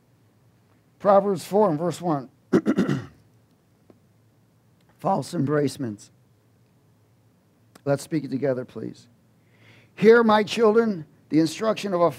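A man speaks calmly and with feeling through a microphone, in pauses.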